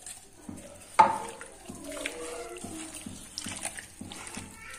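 Hands squish and mix raw meat in a bowl.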